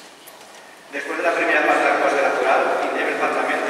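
A man sings loudly through a loudspeaker in a large echoing hall.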